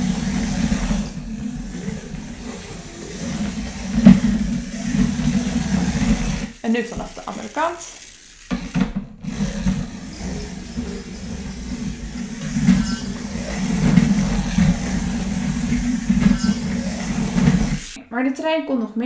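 A small toy robot's motor whirs steadily as it drives along a track.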